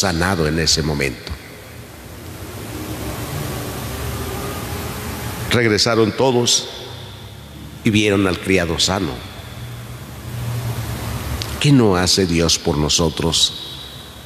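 A man speaks calmly through a microphone, with pauses, in a large echoing room.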